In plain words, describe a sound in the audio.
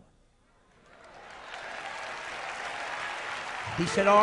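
A crowd applauds and cheers in a large hall.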